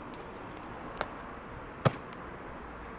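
Shoes land with a thud on pavement.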